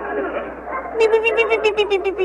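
A boy wails and sobs loudly.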